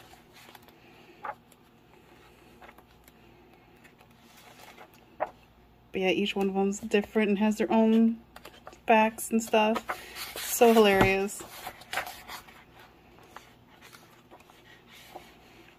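Paper pages rustle and flap as a book's pages are turned.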